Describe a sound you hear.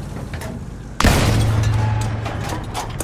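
A cannon fires with a loud boom that rings out.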